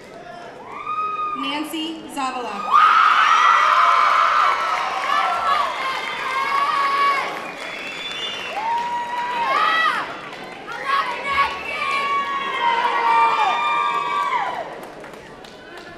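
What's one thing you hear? A crowd cheers and whoops loudly in a large echoing hall.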